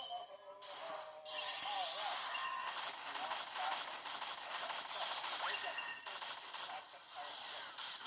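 Gunshots and blasts from a game ring out in quick bursts.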